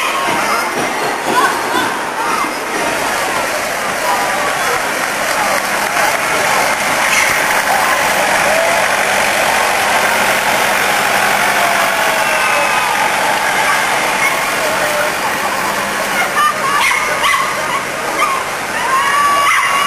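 A crowd of onlookers chatters outdoors.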